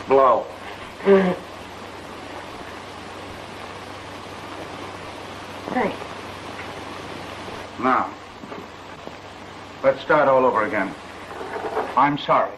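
A young woman speaks softly in short replies.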